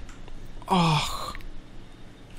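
A zombie growls and snarls nearby.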